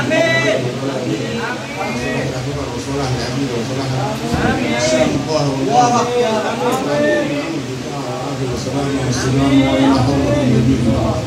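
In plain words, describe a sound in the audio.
An elderly man sings into a microphone.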